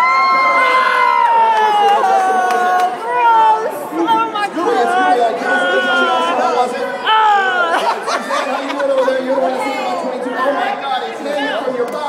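A man sings loudly into a microphone through a loudspeaker.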